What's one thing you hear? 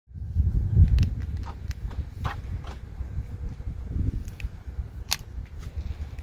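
Buttons on a key fob click sharply.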